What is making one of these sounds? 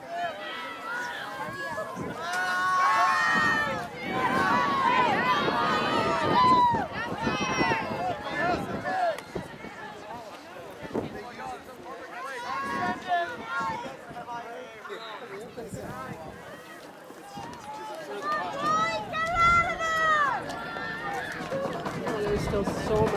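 Spectators close by shout and cheer loudly outdoors.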